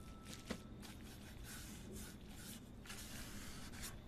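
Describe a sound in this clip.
A brush sweeps and dabs across paper.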